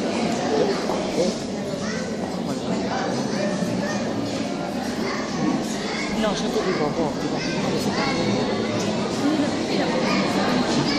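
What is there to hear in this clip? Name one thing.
A crowd of men and women chatters loudly in an echoing hall.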